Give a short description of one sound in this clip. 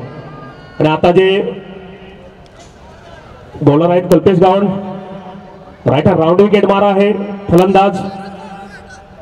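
Several men shout loudly outdoors on an open field.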